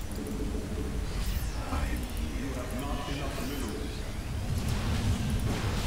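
Sci-fi weapons zap and whoosh in quick bursts.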